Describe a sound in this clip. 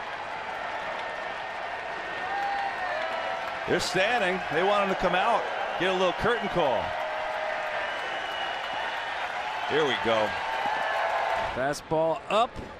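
A large crowd cheers and murmurs in a stadium.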